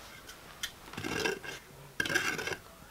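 Pieces of firewood knock and clatter against each other.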